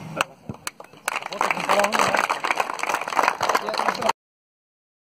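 A group of men applaud.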